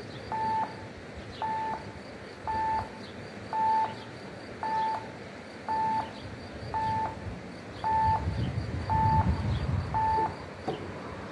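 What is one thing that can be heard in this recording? A crossing bell rings in steady, evenly spaced dings.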